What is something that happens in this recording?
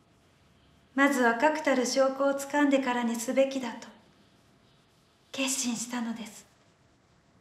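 A woman speaks softly and close by.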